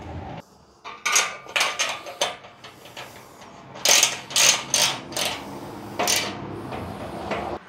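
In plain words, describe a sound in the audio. A light metal frame clanks and rattles as it is adjusted by hand.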